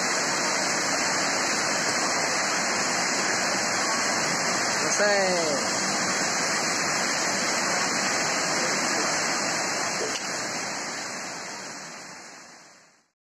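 Heavy rain pours steadily outdoors, then fades away.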